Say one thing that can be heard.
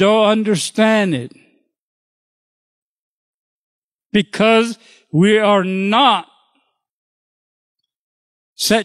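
An elderly man speaks with animation into a microphone, with pauses between phrases.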